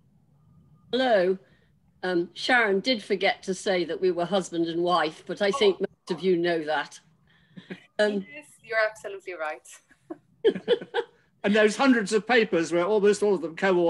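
A woman speaks calmly, heard through an online call.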